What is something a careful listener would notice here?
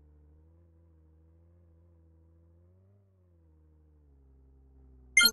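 A car engine hums quietly and steadily, its pitch rising and falling slightly.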